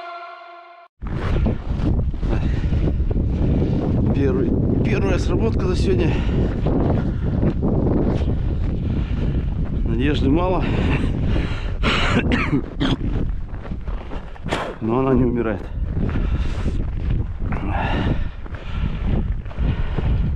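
Boots crunch steadily through deep snow.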